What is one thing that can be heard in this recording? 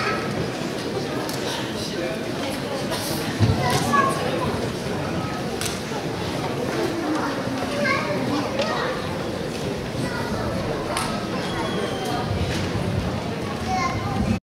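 A woman speaks into a microphone over a loudspeaker in a large hall.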